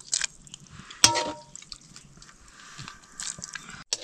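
Water sloshes as a ladle scoops noodles.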